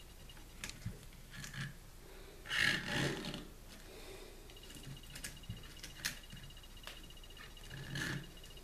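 Plastic parts click softly as they are fitted together.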